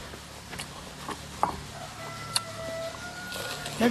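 A man bites and crunches a crisp fruit.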